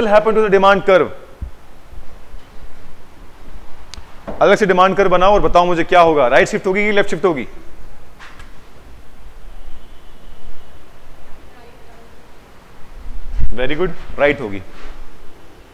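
A man lectures with animation, close to a microphone.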